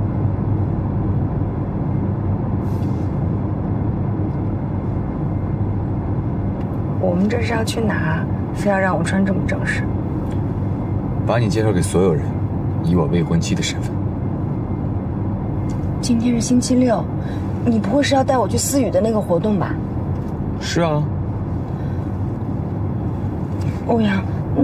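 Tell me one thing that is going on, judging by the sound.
A car engine hums steadily inside a moving car.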